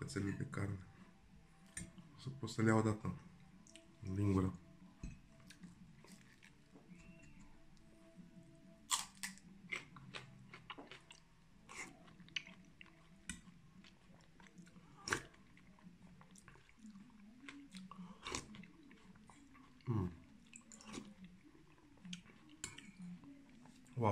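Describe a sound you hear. A spoon clinks against a bowl.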